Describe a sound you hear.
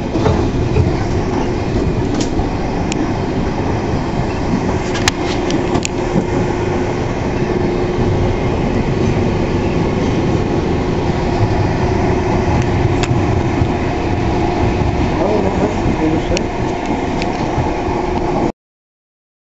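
A train rumbles and rattles along the tracks close by.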